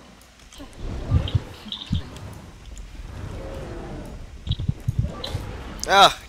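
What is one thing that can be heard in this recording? Magic blasts crackle and thud in a fight.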